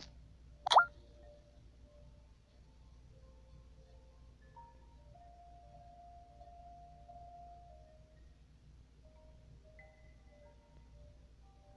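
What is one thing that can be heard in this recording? Light electronic game music plays softly.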